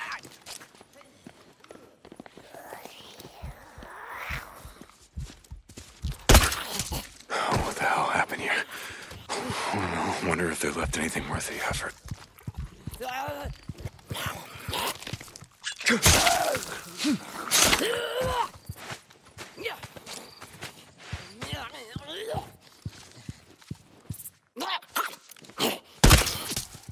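Footsteps crunch over debris on a floor.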